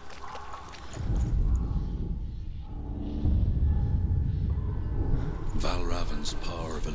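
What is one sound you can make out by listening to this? A deep rumble swells as a glowing seal flares on a stone door.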